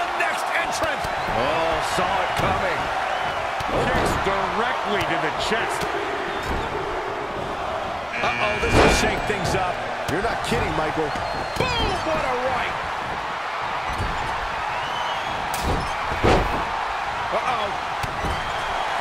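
A large crowd cheers and roars throughout.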